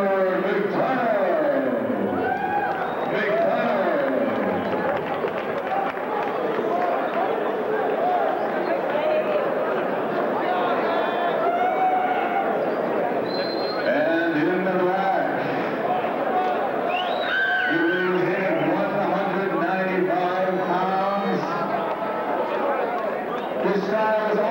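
Voices in a crowd shout and cheer.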